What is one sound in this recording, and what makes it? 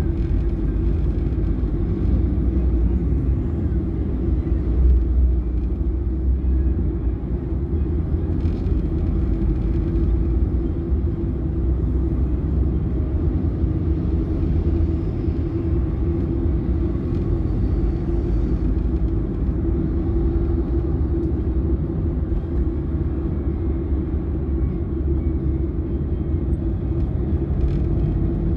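A car engine hums steadily from inside while driving.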